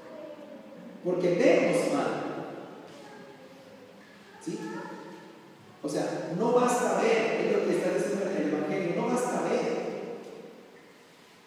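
A man speaks into a microphone over loudspeakers, his voice echoing in a large hall.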